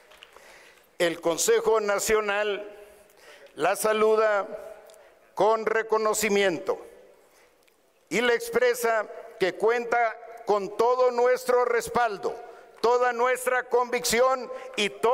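A man speaks firmly into a microphone over loudspeakers.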